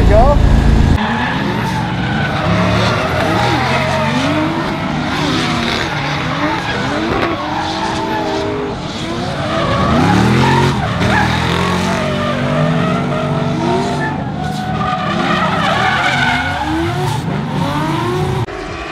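A car engine revs and wails from a distance as cars drift around a track.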